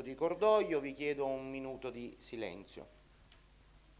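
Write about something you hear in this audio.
A man speaks briefly through a microphone in a large room.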